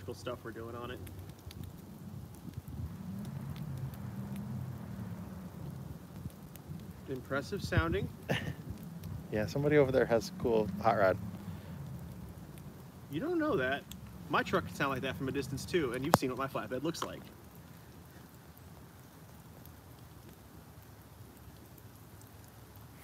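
A fire crackles and pops steadily.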